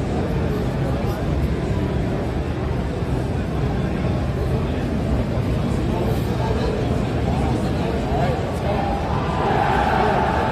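A crowd murmurs and chatters in a large room.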